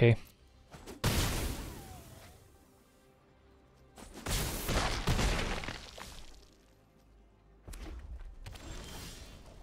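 A game's magical sound effects whoosh and chime.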